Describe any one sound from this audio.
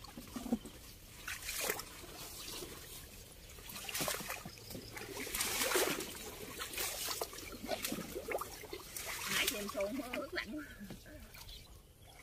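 A paddle splashes in water as a small boat is rowed.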